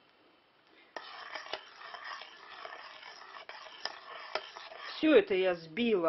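A spoon stirs and scrapes in a pot of water.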